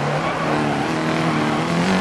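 Tyres skid on a loose road edge.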